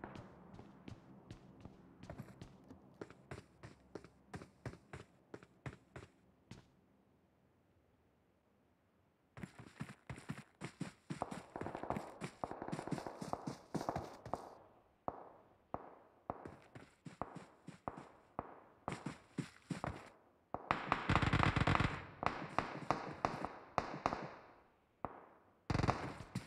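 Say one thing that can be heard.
Footsteps tap quickly on a hard floor indoors.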